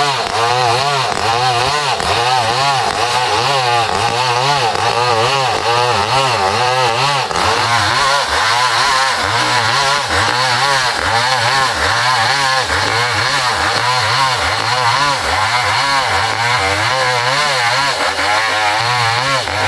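A chainsaw engine roars loudly as it cuts through wood.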